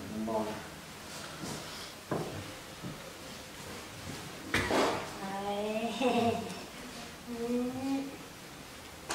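A woman speaks softly and casually nearby.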